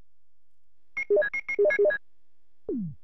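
Short electronic menu beeps chime in quick succession.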